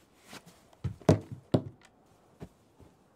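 A wooden bed creaks as someone lies down on it.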